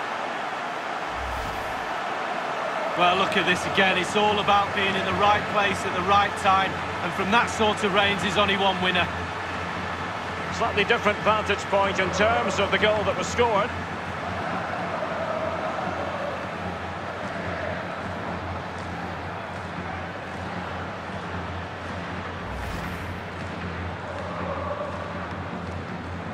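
A large stadium crowd roars and cheers steadily.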